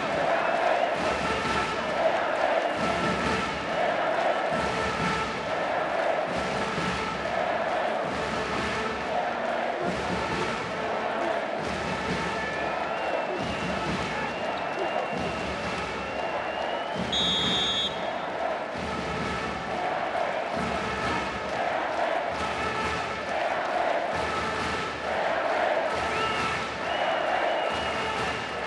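A large crowd chants and cheers rhythmically in a big echoing arena.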